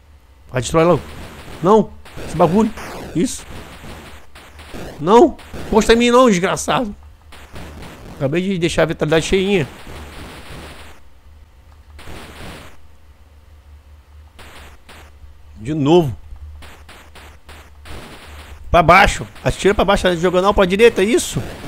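Electronic video game zaps and blips sound as shots are fired.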